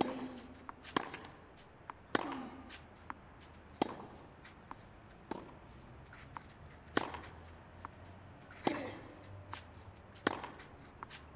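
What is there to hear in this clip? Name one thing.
Tennis rackets strike a ball back and forth in a steady rally.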